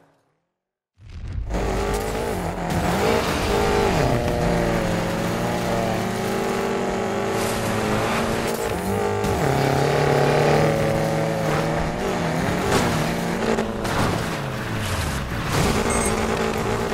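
A car engine roars and revs up and down at speed.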